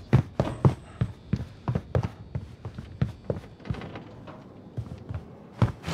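Footsteps thump quickly on wooden boards.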